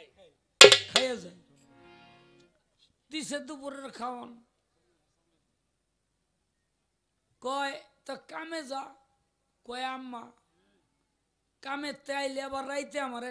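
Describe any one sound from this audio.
A man sings loudly through a microphone in short phrases.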